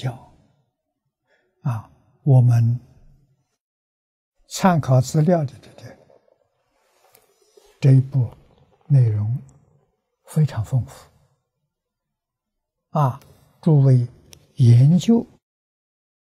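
An elderly man speaks calmly and slowly into a close microphone, with pauses between phrases.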